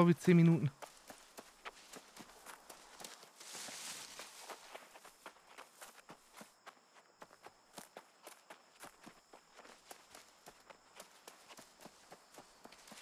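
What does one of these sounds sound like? Footsteps rustle quickly through grass and undergrowth.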